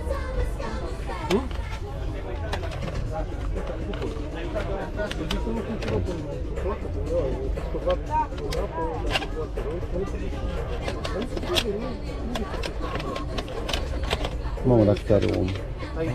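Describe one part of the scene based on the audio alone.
Plastic cases clack and rattle as hands sort through them.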